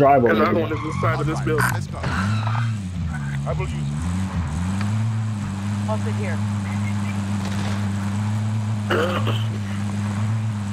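A vehicle engine hums steadily and revs as the vehicle drives off.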